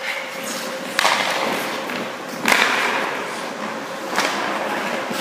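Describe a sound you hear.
A hockey stick slaps a puck with a sharp crack, echoing in a large hall.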